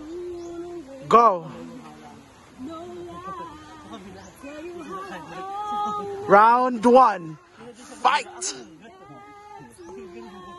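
A woman speaks and laughs close by.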